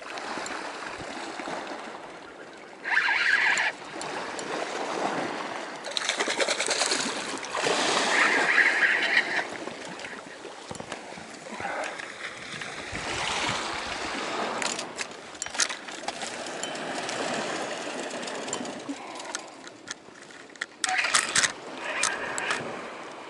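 A fishing reel clicks and whirs as its handle turns.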